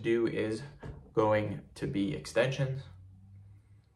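A young man speaks calmly and close to the microphone.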